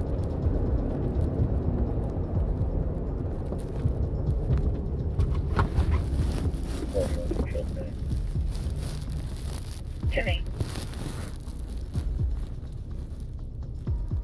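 A car engine hums and tyres roar on the road.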